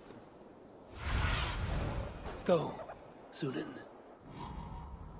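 A large bird's wings flap loudly.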